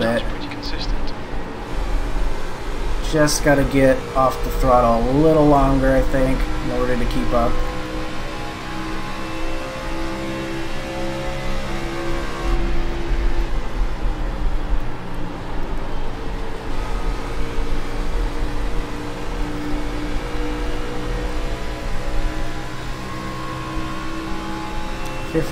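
Other race car engines drone close by.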